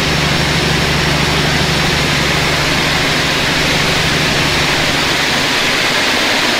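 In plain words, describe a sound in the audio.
A diesel locomotive drones low as it passes, then fades out.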